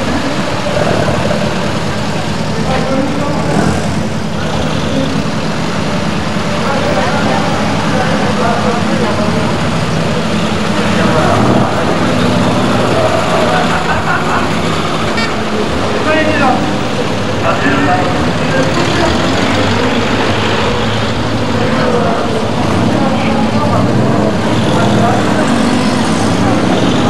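Old car engines rumble as cars roll slowly past.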